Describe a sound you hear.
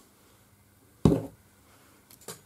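A hand presses down on a card with a dull thump.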